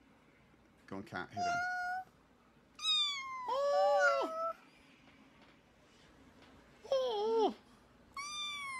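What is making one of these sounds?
A young child talks in a high voice.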